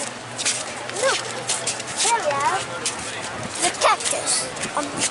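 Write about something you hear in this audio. A young girl speaks excitedly close by.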